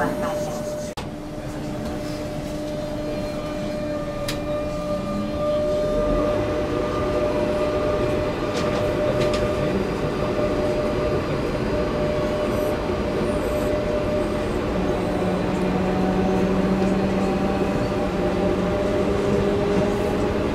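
A train hums and rumbles steadily as it rolls along the tracks.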